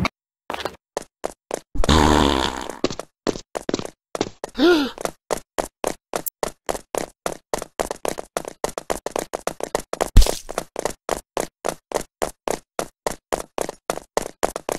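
Quick footsteps run steadily on a hard floor.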